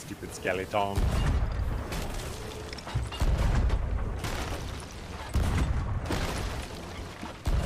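Cannons fire with deep booms.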